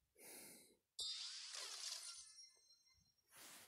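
A bright, sparkling chime rings briefly.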